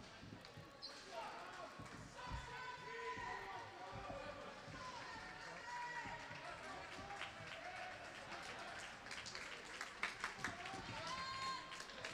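Young women chat and call out in a large echoing rink.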